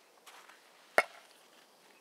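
A metal can is set down on a wooden stump with a short knock.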